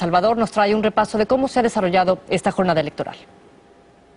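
A woman speaks calmly and clearly into a microphone, like a news presenter.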